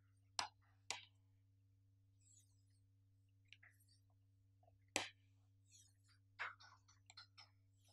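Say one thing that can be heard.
A wooden ruler knocks against a board.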